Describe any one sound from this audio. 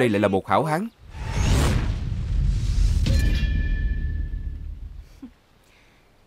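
A sword rings out with a metallic clang.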